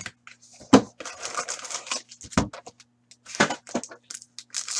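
Plastic wrapping crinkles as a pack is opened.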